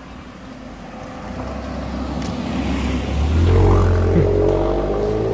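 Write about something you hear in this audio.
A car drives past close by on the road.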